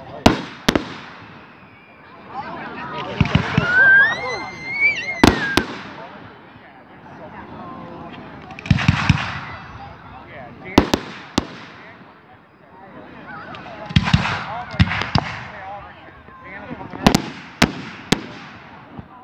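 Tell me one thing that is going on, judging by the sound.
Fireworks burst with loud sharp bangs and crackles.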